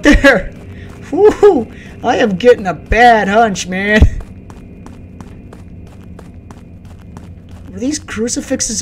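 Footsteps crunch steadily on dry ground.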